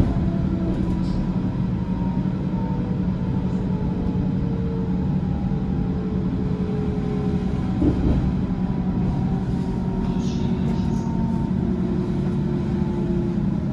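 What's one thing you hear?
A train rumbles steadily along the rails, heard from inside a carriage.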